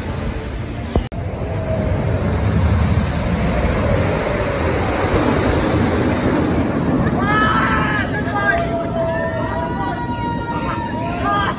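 A wooden roller coaster train rumbles and clatters along its track nearby.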